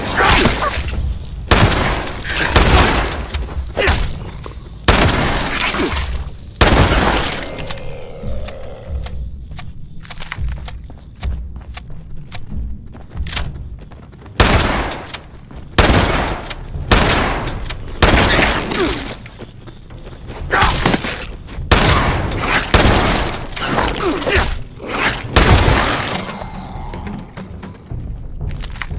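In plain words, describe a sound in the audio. A shotgun fires loudly again and again, each blast echoing.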